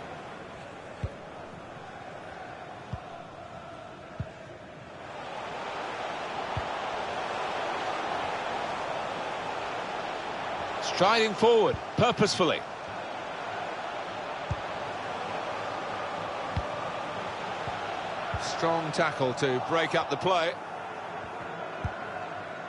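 A ball is kicked with dull thumps now and then.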